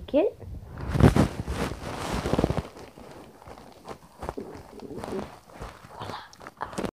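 Hands rustle against a soft blanket.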